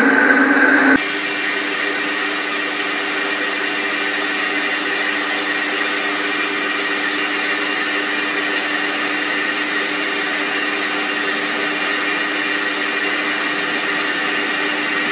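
A cutting tool shaves spinning metal with a high, steady hiss.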